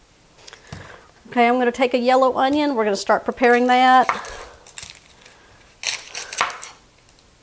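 A knife cuts through an onion on a wooden board.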